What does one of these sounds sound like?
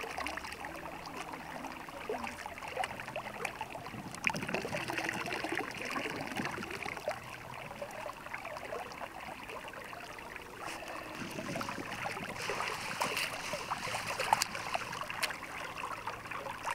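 A shallow stream trickles steadily.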